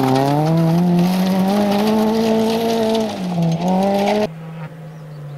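A rally car engine roars loudly at high revs as the car speeds past close by.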